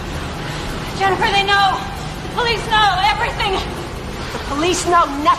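A woman screams in terror.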